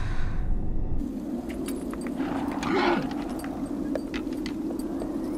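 Wind blows strongly across open mountains.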